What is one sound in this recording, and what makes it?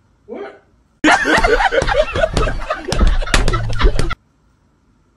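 Men laugh loudly into microphones.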